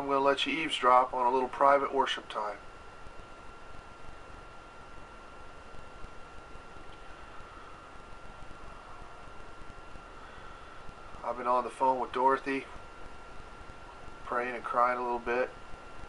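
A middle-aged man speaks slowly and calmly, close to the microphone, with long pauses.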